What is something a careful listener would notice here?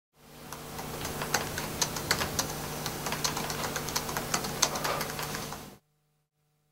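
Fingers tap quickly on a laptop keyboard.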